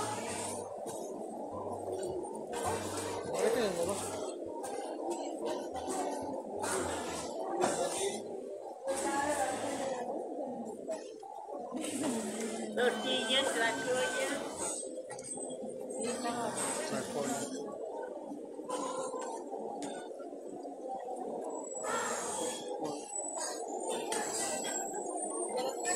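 A crowd of men and women chatter all around.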